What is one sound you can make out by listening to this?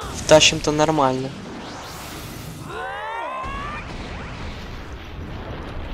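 A fiery blast roars loudly.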